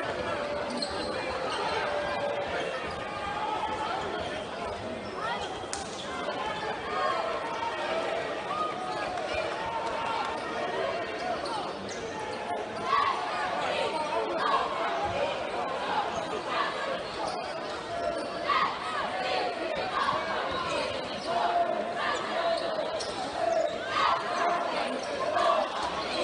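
A crowd in a large echoing arena chatters and cheers.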